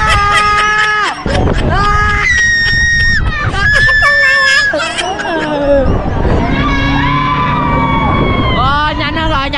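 A young man screams loudly and long at close range.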